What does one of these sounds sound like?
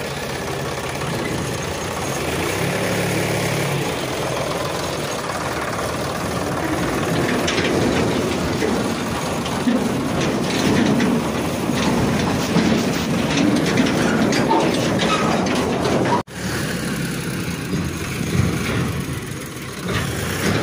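A plastic toy truck rolls over dirt with a rattling of its wheels.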